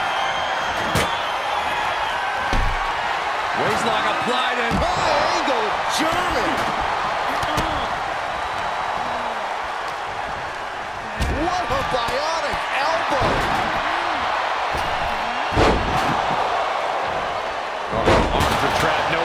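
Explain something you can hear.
Bodies thud heavily onto a wrestling ring.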